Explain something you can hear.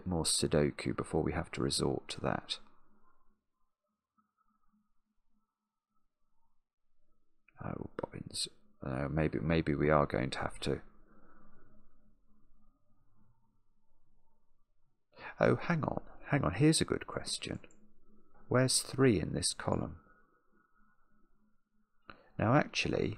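A man speaks calmly and thoughtfully into a close microphone, pausing often.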